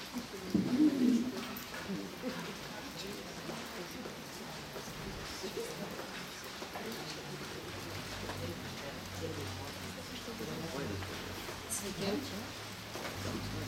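A middle-aged woman speaks calmly into a microphone, heard through a loudspeaker.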